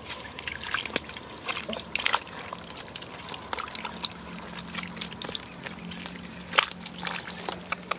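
A basket scrapes against mud.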